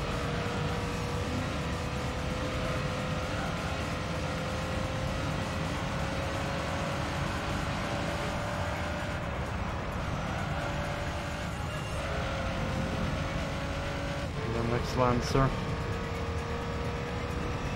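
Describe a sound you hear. A racing car engine hums steadily at high speed.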